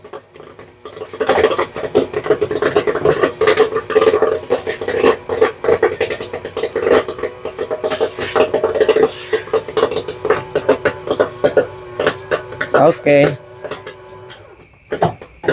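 Popcorn pops rapidly in a machine with sharp crackles.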